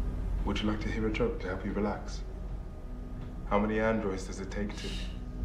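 A man speaks calmly and softly nearby.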